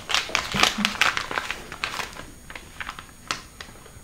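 Paper crinkles as an envelope is opened.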